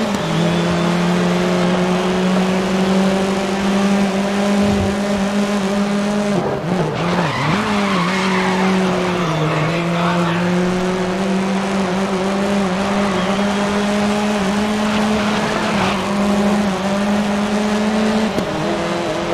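A race car engine roars at high revs, dropping and rising in pitch through the gears.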